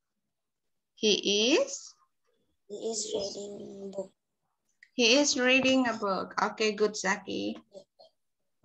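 A young girl speaks calmly through an online call.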